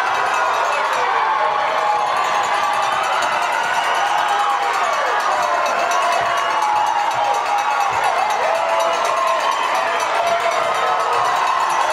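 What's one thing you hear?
A large crowd cheers and screams loudly in an echoing hall.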